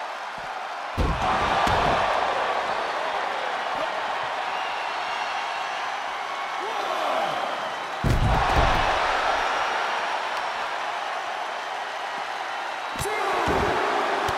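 Heavy bodies slam onto the floor with loud thuds.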